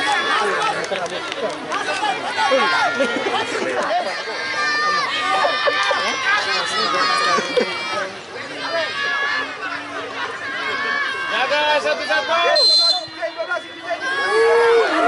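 A large outdoor crowd of spectators cheers and shouts excitedly.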